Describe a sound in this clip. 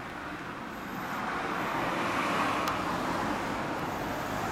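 A car drives past on the road nearby.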